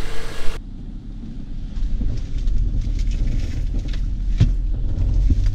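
A car engine rumbles low and steady from inside the cabin.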